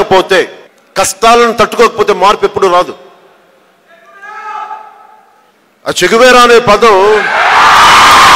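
A man speaks forcefully into a microphone, heard through loudspeakers.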